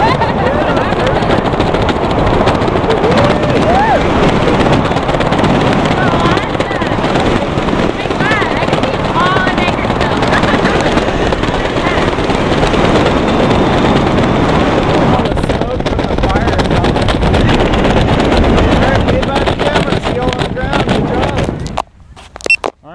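Wind roars loudly past the microphone.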